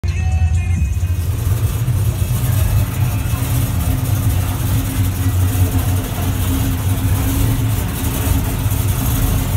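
A car engine rumbles low and steady as the car rolls slowly.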